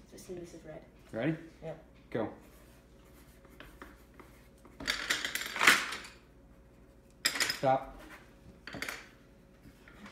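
Pencils scratch on paper.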